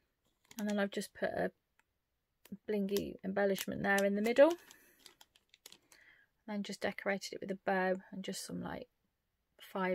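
A plastic sleeve crinkles as it is handled.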